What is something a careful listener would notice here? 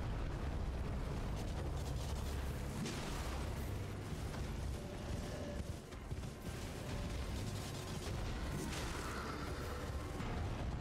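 Heavy thuds and rumbling play throughout.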